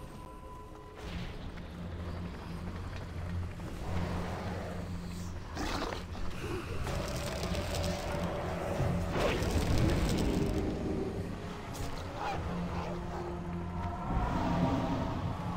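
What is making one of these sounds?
Magic spells burst and crackle amid a noisy fight.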